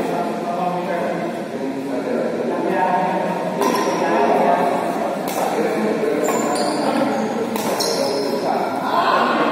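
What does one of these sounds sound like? Men talk and call out in the background of a large echoing hall.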